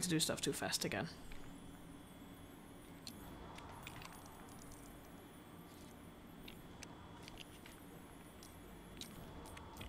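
Magic energy shimmers and crackles softly.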